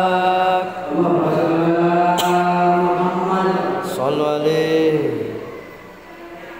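A woman speaks loudly and warmly close by.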